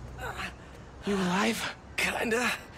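A young man asks a question in a low voice, close by.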